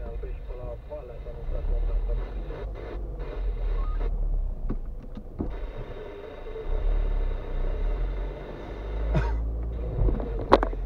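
A car engine hums low and steady inside the car as the car moves slowly.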